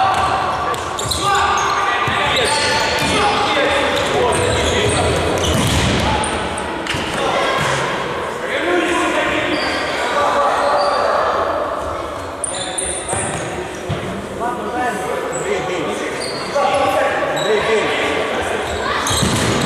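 A ball is kicked hard on a hard indoor floor.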